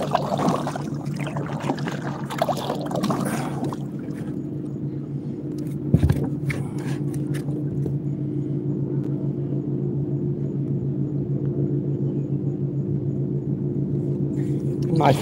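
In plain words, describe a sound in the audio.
Water laps softly against the hull of a small boat.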